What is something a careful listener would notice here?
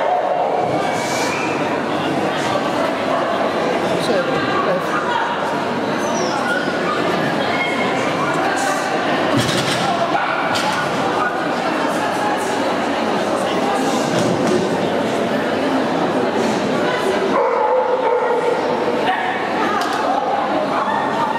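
A crowd of spectators murmurs and chatters in a large echoing indoor hall.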